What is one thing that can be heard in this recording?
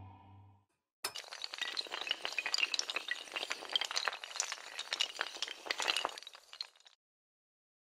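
Dominoes clatter rapidly as they topple one after another.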